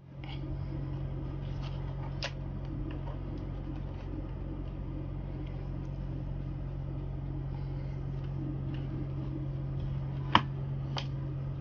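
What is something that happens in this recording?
Plastic rustles and knocks as hands handle a power adapter.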